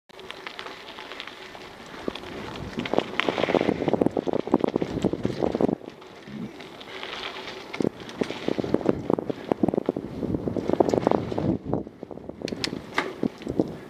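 Bike tyres rattle and crunch over a bumpy dirt trail.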